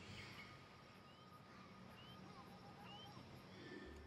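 An eagle screeches high overhead.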